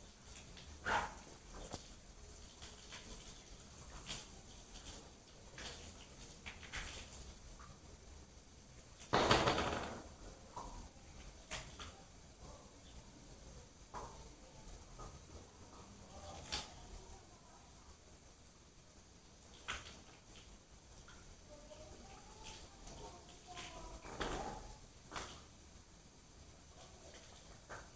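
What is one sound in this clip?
A woman speaks quietly and calmly close by.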